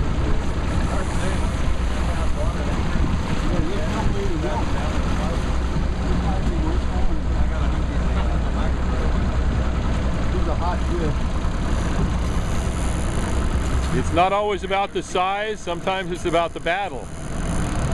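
A river rushes past.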